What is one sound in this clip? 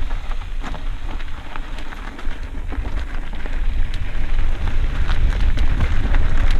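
Mountain bike tyres rumble and crunch over a dirt trail on a descent.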